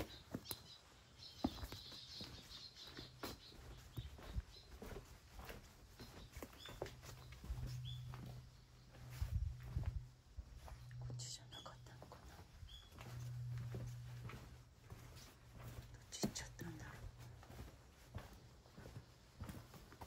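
Footsteps scuff slowly on damp concrete.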